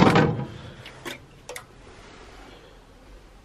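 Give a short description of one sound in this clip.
Aluminium cans clink and rattle as hands handle them.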